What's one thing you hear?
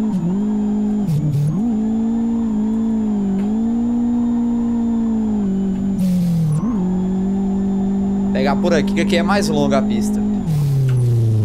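A car engine drones steadily, its pitch dipping and rising briefly at gear changes.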